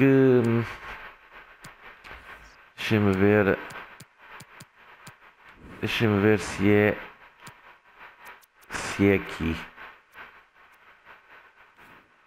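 Short electronic menu clicks tick now and then.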